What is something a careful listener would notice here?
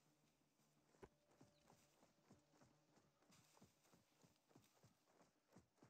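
Footsteps thud and rustle through grass.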